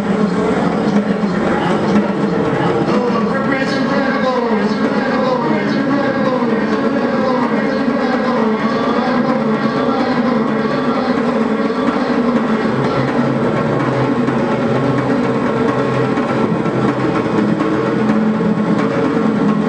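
Droning electronic music plays steadily.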